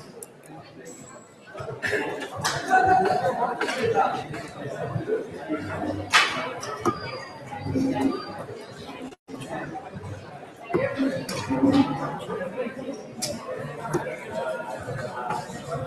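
Darts thud into a dartboard one after another.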